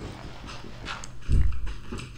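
A stone block crumbles and breaks with a crunch.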